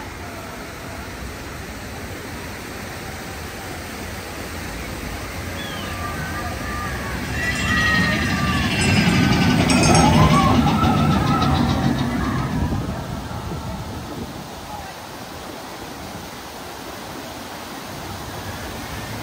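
A waterfall splashes steadily.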